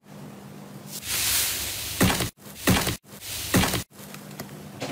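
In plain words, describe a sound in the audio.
A crust of slime crackles and tears as a hand presses into it.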